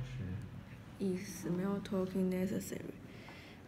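A young woman speaks briefly and softly, close by.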